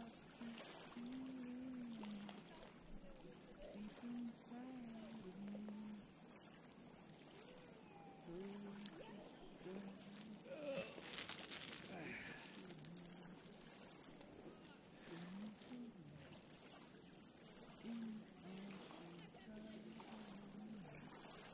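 Small waves lap gently against a pebble shore.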